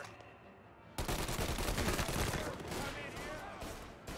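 A submachine gun fires a rapid burst of shots that echo through a large hall.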